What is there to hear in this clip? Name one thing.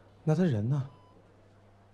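A man asks a short question in a weary voice.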